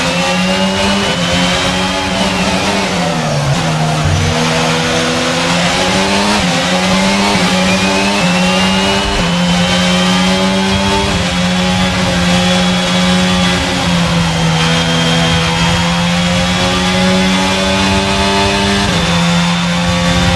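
Rain spray hisses under the tyres.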